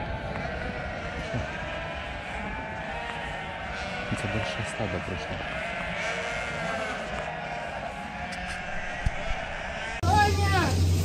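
A flock of sheep bleats in a noisy chorus.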